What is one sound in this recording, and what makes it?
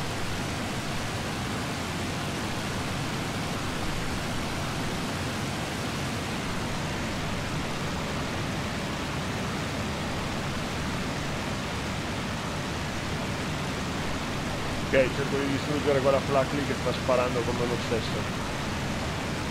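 An aircraft engine drones steadily in the cockpit.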